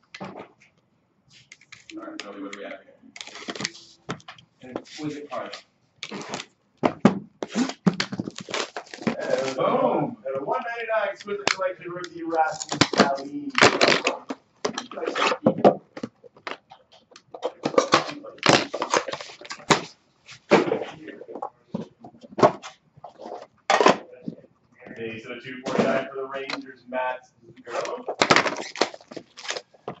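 Cardboard boxes knock and scrape as hands handle them.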